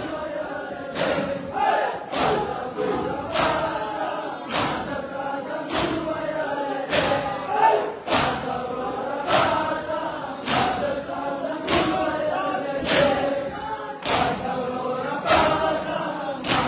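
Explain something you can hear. A large crowd of men beat their chests in loud, rhythmic unison.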